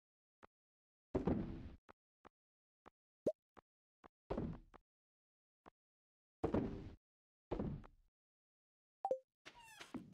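Game menu clicks tick softly.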